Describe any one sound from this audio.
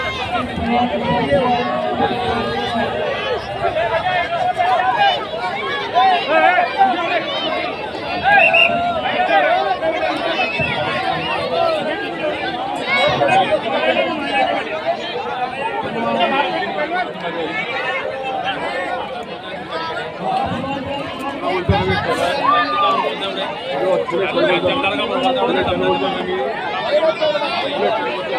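A large outdoor crowd chatters and shouts throughout.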